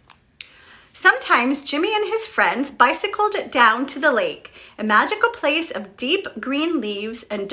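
A young woman reads aloud with animation, close by.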